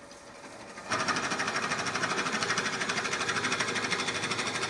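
A lathe spins with a steady whir.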